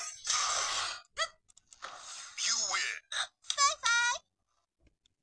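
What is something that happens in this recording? A handheld game console plays loud fighting sound effects through its small speaker.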